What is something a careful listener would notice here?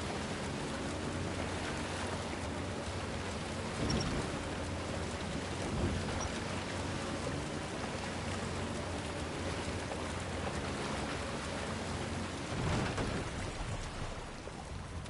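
Water laps gently against a small wooden boat as it glides.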